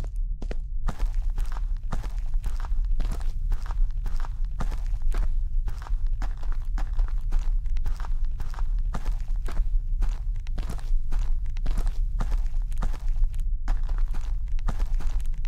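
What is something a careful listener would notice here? Footsteps thud quickly and steadily along a hard floor.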